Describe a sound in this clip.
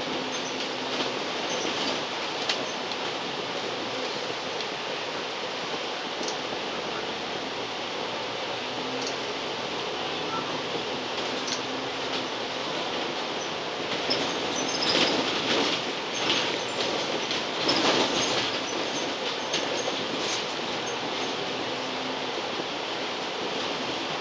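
Window glass and the bus body rattle over bumps.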